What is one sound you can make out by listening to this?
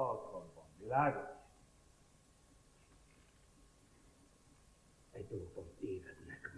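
A middle-aged man speaks loudly and theatrically, with pauses.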